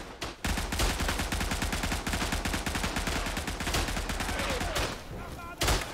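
Rapid gunfire crackles in a video game.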